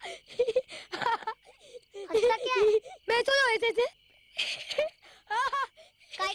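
A young boy laughs loudly.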